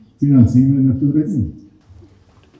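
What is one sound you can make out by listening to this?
An elderly man speaks with emphasis into a microphone.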